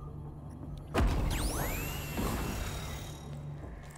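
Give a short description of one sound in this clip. A gun fires with a loud blast and a ringing, falling whine.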